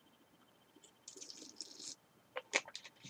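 A young man gulps a drink from a bottle.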